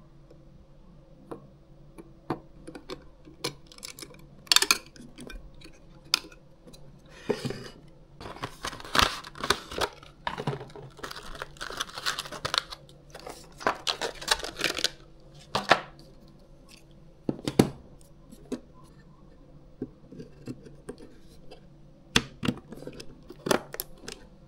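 Hard plastic parts click and tap as hands handle them.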